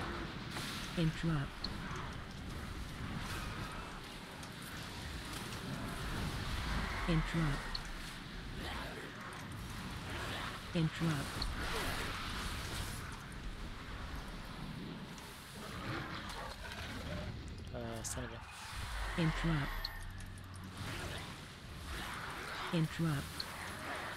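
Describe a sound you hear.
Game spell effects whoosh and chime.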